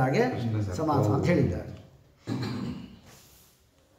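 An elderly man chants into a microphone in a slow, rising and falling voice.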